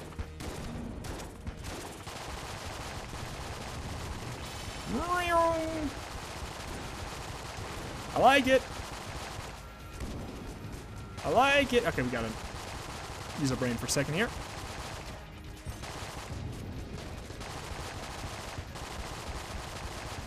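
Video game guns fire rapidly.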